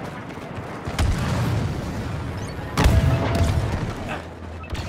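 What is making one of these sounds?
Explosions boom with deep thuds.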